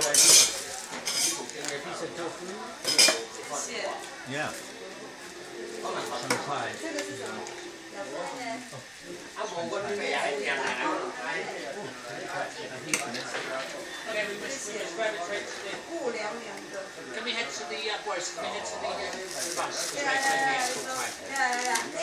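Metal utensils clink and scrape against pots and bowls.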